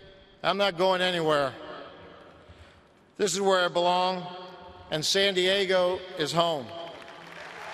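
A middle-aged man speaks slowly and solemnly into a microphone, echoing in a large open space.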